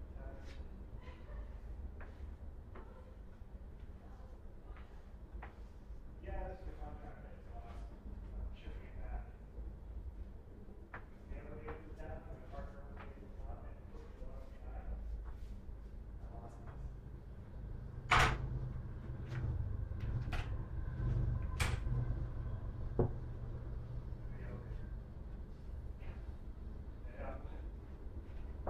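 Objects knock and clatter nearby.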